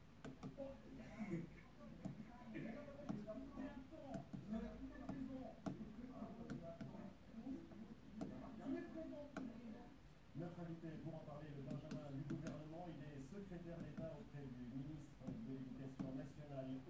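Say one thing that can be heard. Small push buttons click under a finger.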